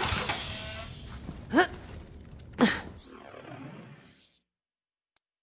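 A game's ambient noise and a device whoosh rise at the start, then cut off.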